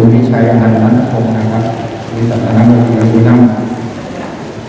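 A man chants steadily into a microphone.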